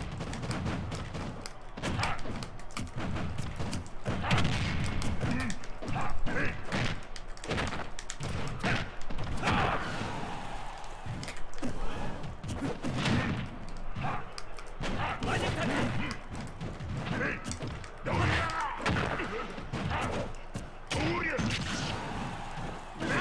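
Video game fighters land hits with sharp impact sounds.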